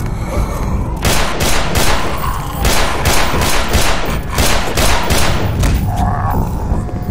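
A pistol fires several quick shots in a row.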